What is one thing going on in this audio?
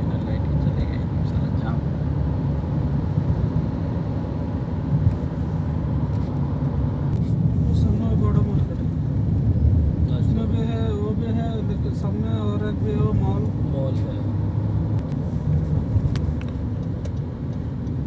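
A car's engine hums and tyres roll steadily on the road, heard from inside the car.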